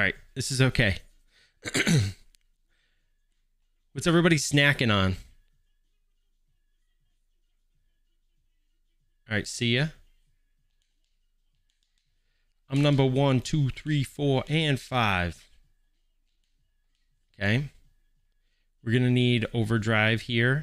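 A man talks with animation, close to a microphone, in short bursts.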